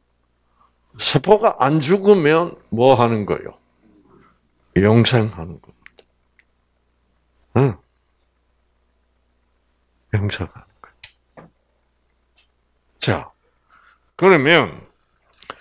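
An elderly man speaks calmly into a microphone, pausing often.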